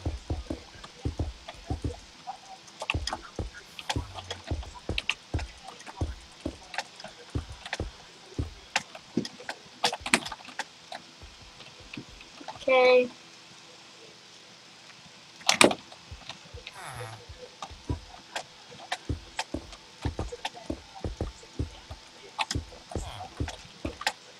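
Footsteps and block placements tap rapidly in a video game.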